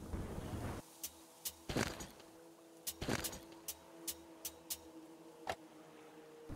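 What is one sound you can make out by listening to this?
Sharp menu clicks tick several times.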